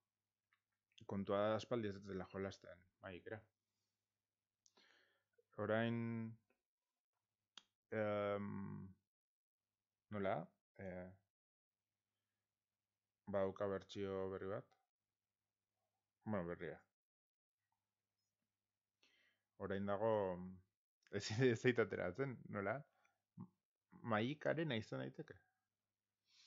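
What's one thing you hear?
A man talks with animation through a close microphone, in short bursts with pauses.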